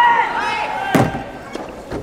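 A racket strikes a soft tennis ball in an echoing hall.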